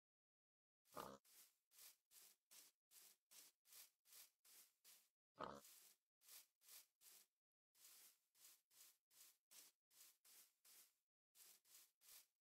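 Footsteps patter softly on grass at a steady pace.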